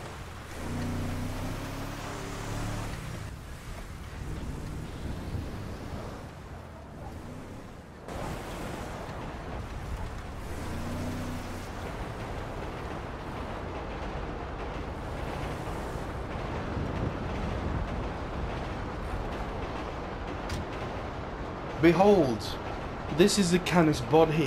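A truck engine revs and idles.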